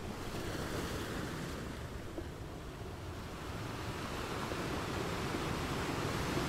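Waves crash and roll onto rocks nearby.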